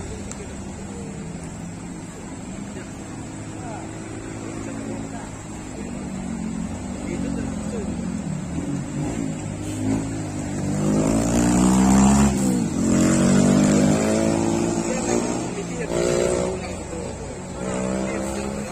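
Car engines hum and rev as cars climb slowly past.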